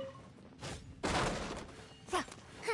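A wooden crate smashes apart.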